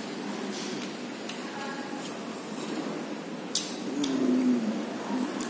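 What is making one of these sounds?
A spoon clinks and scrapes inside a paper cup.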